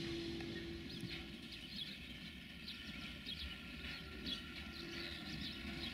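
Freight wagons clatter and squeal over the rails close by.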